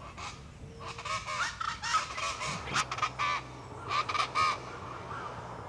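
A bird calls loudly in the trees, in short repeated bursts.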